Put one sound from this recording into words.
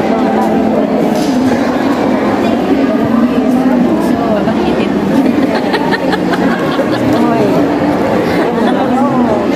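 A crowd of voices talks and calls out at once, echoing in a large hall.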